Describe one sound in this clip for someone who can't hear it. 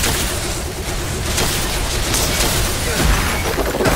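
Magic blasts crackle and fizz.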